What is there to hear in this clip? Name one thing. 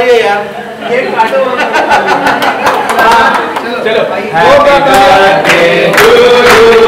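Several people clap their hands in a steady rhythm.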